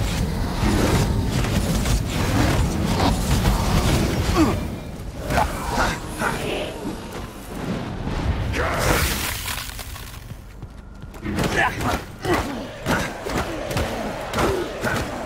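Punches land with heavy thuds in a brawl.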